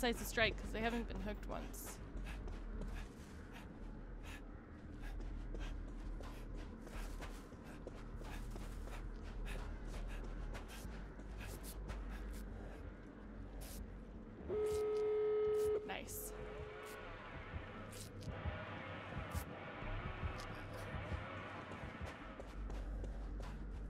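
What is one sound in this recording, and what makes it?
Footsteps run over sand.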